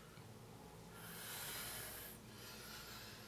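A young man sighs softly close by.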